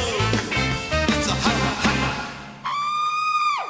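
A live band plays loud music.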